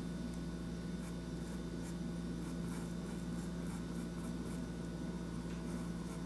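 A paintbrush softly brushes across canvas.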